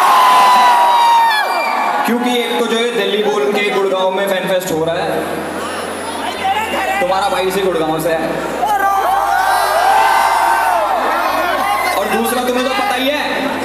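A man sings through loudspeakers in a large echoing hall.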